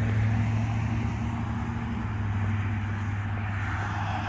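A vehicle drives along a wet road in the distance, its tyres hissing.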